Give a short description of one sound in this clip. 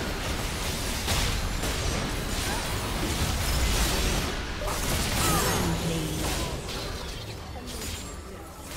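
Magic spells blast and crackle in a fast game battle.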